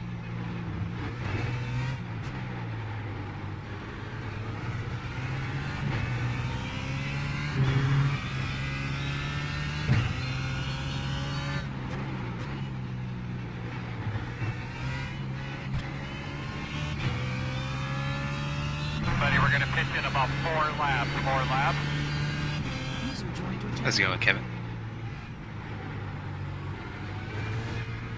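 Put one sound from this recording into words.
A racing car engine revs up and down through gear changes.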